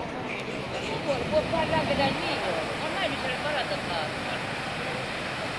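Adults chatter nearby.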